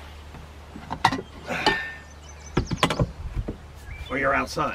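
A metal latch clicks and clatters.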